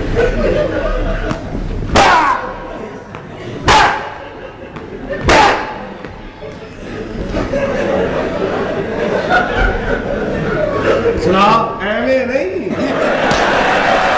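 A man talks loudly on a stage through a microphone.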